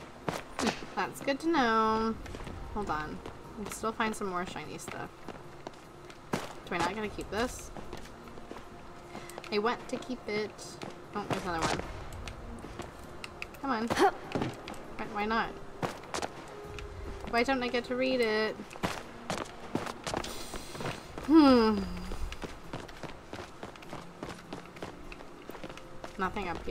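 Quick footsteps patter on hard stone.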